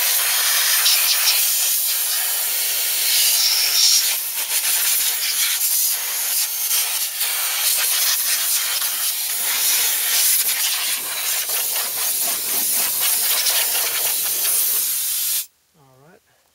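An engine idles with a loud, steady hiss.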